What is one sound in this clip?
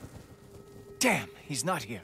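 A boy speaks in a frustrated tone, close by.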